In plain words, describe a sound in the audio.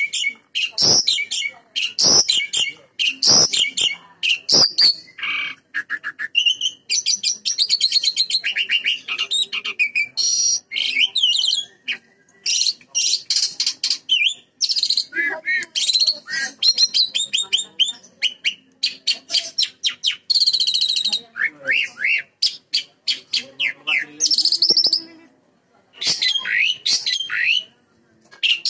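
An Asian pied starling sings loud, varied whistles and chattering phrases.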